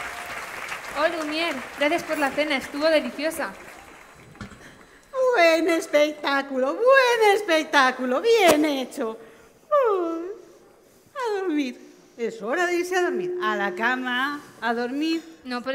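A woman sings through loudspeakers.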